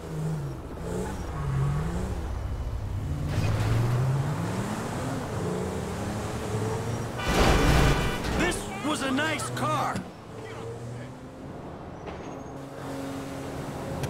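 A car engine revs and roars as the car speeds up.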